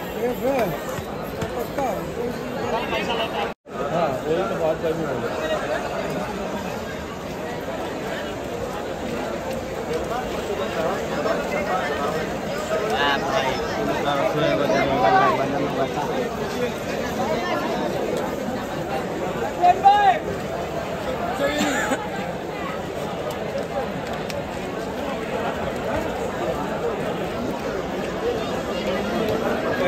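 A crowd of men chatters loudly all around, outdoors.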